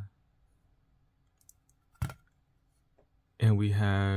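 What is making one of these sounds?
A hard plastic case clicks softly as it is turned over in the hands.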